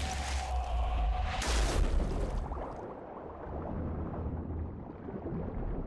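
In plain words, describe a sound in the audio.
A structure collapses with a deep rumble.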